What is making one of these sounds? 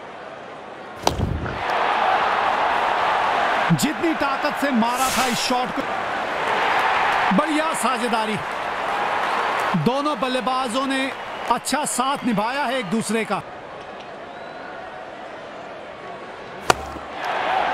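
A cricket bat cracks sharply against a ball.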